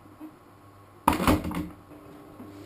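A kettle is set down with a clunk.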